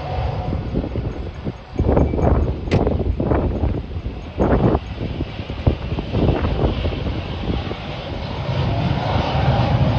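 A jet airliner's engines roar steadily on a runway.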